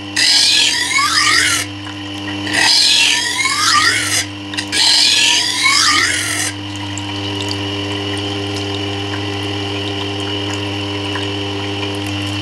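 A grinding wheel motor hums steadily.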